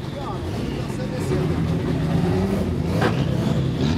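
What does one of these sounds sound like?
Tyres screech as a car spins its wheels.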